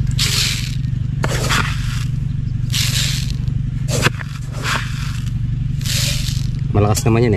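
Granules pour and rattle into a plastic container.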